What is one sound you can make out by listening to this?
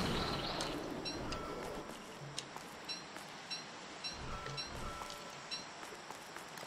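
Small footsteps tap lightly and evenly.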